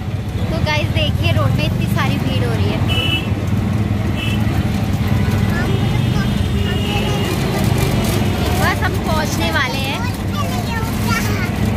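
Motorbikes and traffic pass nearby.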